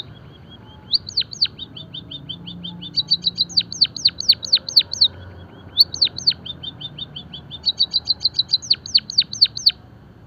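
A white-headed munia sings a fast series of chirps and downward-sweeping whistles.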